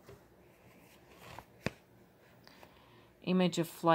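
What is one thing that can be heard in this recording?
A notebook page rustles as it is turned.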